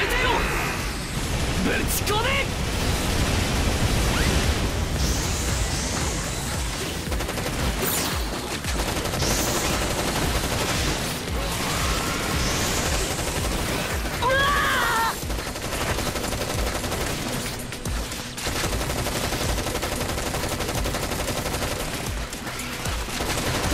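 Game explosions boom and crackle.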